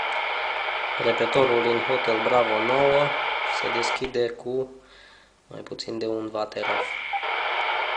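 A man's voice crackles through a handheld radio's speaker.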